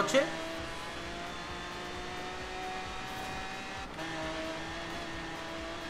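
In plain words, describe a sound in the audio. A racing car engine roars at high revs, climbing in pitch, briefly dropping as it shifts gear, then climbing again.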